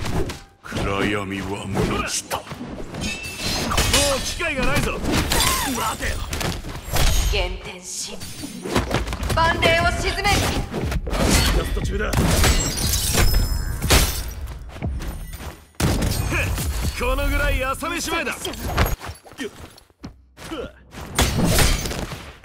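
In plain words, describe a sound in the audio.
Blades clash and strike in quick, loud hits.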